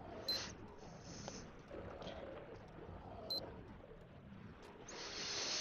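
A young man speaks quietly and calmly through a webcam microphone.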